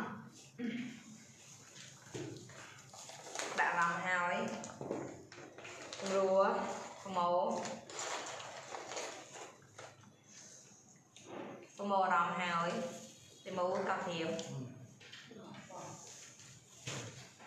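A young woman speaks nearby in an animated voice.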